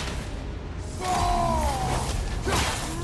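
A fiery blast bursts with a deep boom.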